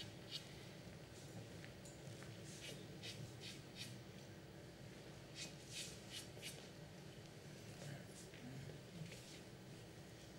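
Billiard balls click sharply against each other and the cushions.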